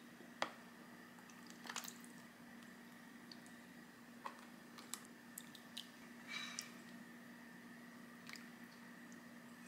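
A ladle clinks against a pot.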